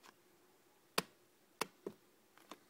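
A fingertip taps sharply on glass.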